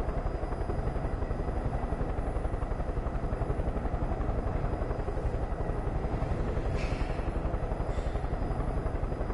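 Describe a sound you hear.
A helicopter engine whirs and its rotor thumps steadily up close.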